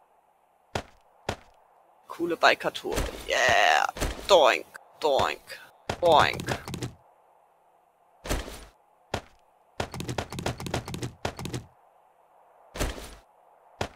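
Short clicks sound as items are moved between slots.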